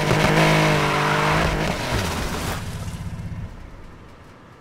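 An air-cooled flat-six racing car engine revs hard and then drops away.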